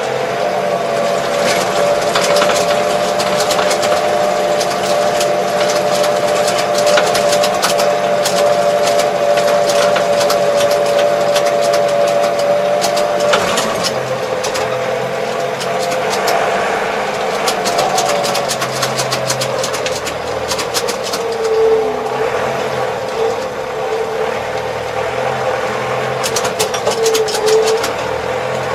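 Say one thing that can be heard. A tractor engine hums steadily up close.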